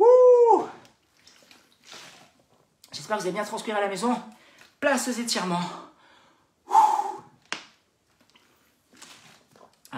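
A man gulps water from a plastic bottle.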